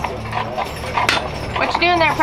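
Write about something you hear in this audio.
A metal grill lid clanks shut.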